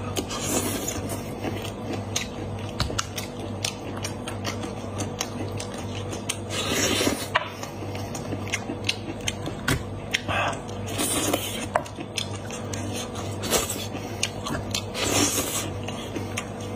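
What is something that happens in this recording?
Meat and bone tear and crackle in hands, close up.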